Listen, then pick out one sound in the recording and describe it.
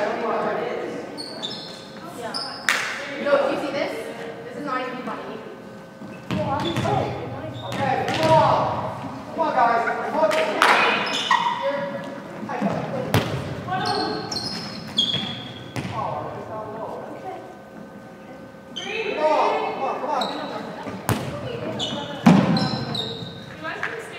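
Young women call out and chatter in a large echoing gym.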